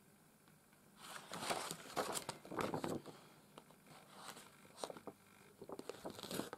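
Felt rustles and scrapes under fingers.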